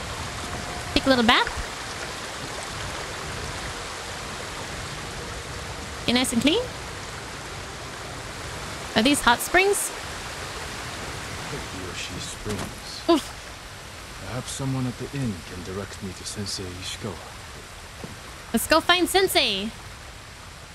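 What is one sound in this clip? A young woman speaks with animation into a close microphone, in short bursts.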